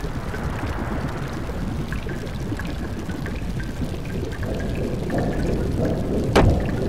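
Water rushes steadily through a channel.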